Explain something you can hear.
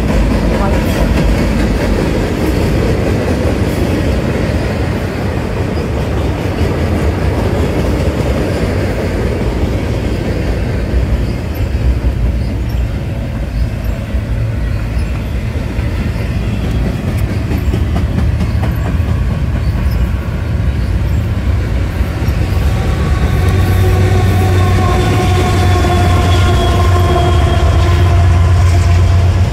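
Freight cars rumble and clatter past on the rails, close by.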